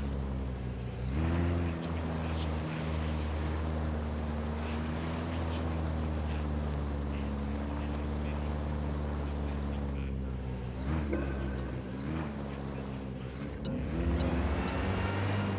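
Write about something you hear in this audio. A van engine hums steadily and revs up and down as the van drives.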